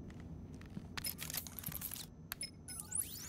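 Keys clatter on a keyboard.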